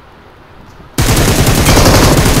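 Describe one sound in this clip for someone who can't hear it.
Rapid gunfire rattles loudly and close.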